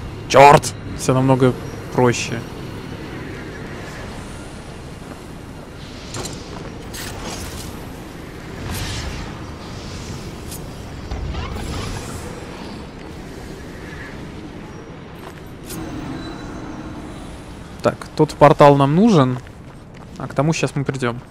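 Heavy footsteps thud on stone.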